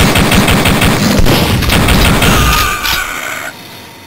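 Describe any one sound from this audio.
A pistol fires several shots.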